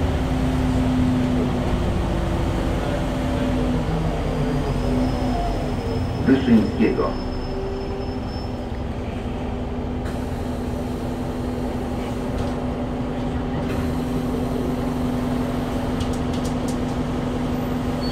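A bus rattles and clatters as it drives along.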